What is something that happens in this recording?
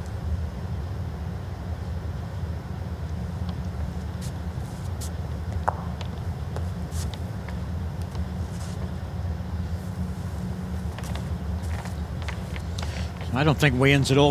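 A bowl rolls softly across a carpet.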